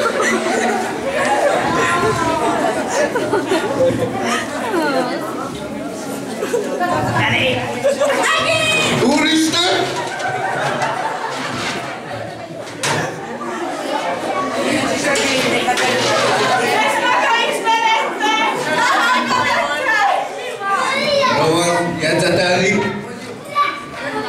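Young people chatter and laugh nearby.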